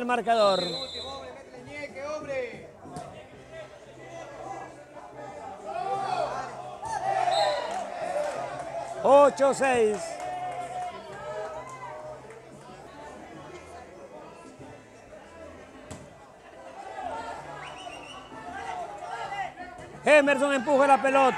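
A crowd of men talk and shout loudly outdoors.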